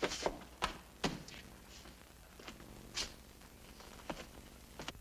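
Footsteps knock on a wooden floor.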